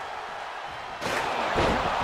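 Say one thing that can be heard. A metal chair smashes against a body with a loud crash.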